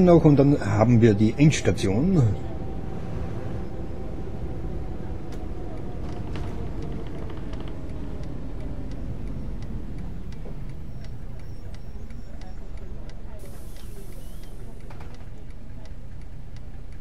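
A diesel city bus engine rumbles as the bus drives.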